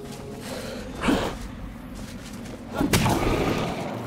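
A character's weapon strikes a creature.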